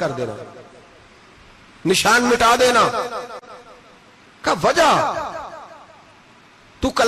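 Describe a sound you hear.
An adult man speaks slowly and with feeling into a microphone, his words echoing through a loudspeaker.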